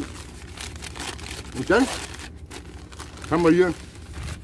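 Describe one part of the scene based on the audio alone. Paper crinkles as a man unwraps food.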